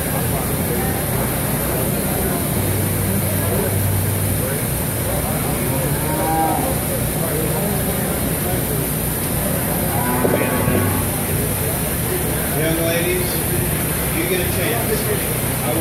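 A crowd of men and women chatter and murmur nearby.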